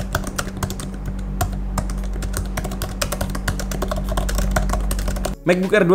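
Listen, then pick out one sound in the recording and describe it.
Fingers type quickly on a laptop keyboard, keys clicking rapidly.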